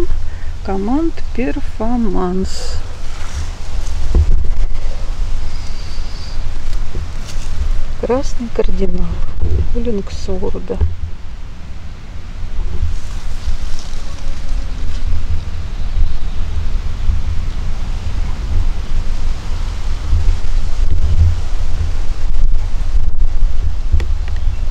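Wind rumbles steadily and gusts outdoors.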